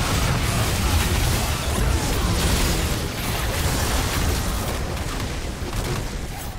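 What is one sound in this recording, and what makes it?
Magic spells crackle and boom in a hectic fantasy battle.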